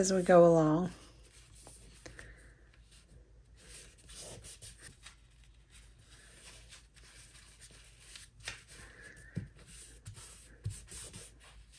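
Paper rustles and crinkles softly as it is folded by hand.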